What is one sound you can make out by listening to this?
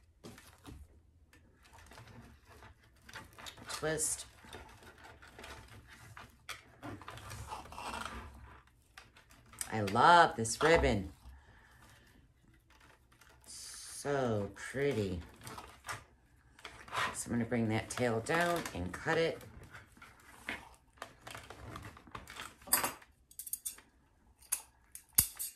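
Wired ribbon rustles and crinkles as it is handled.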